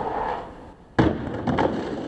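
A skateboard lands hard with a loud clack.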